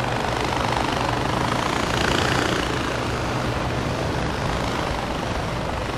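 A winch motor whirs steadily as it lowers on a cable.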